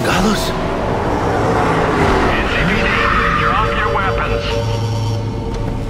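A car engine roars as a car pulls up close.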